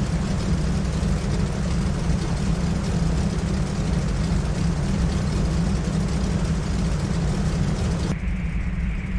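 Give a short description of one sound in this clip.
A small propeller plane's engine drones loudly outside.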